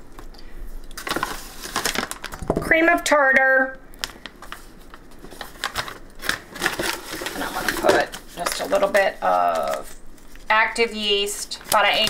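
A foil bag crinkles and rustles.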